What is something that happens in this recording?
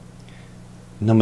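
A man speaks into a microphone, heard over an online call.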